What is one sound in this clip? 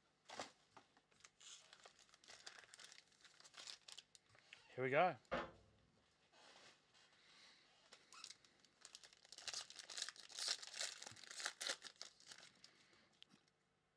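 Foil packs crinkle and rustle in hands.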